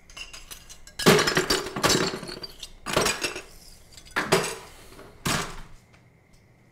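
Objects clatter and knock against a hard countertop.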